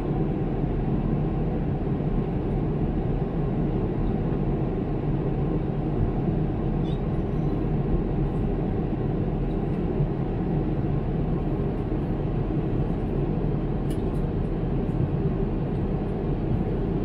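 A jet airliner's engines roar in a steady, low rumble inside the cabin.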